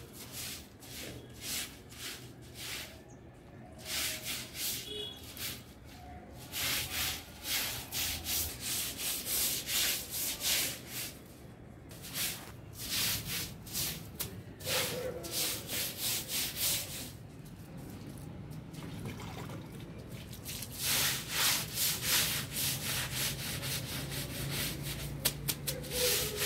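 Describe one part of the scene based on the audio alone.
A brush scrubs rhythmically across a wet concrete floor.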